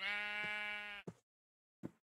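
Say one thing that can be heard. A chicken clucks.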